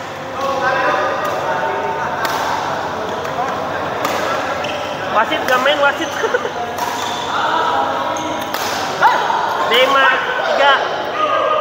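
Rackets smack a shuttlecock back and forth in an echoing hall.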